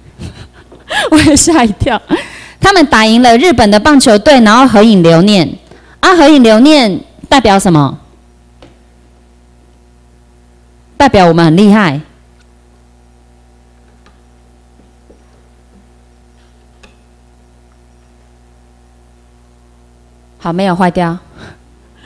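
A woman speaks with animation through a microphone in a room with some echo.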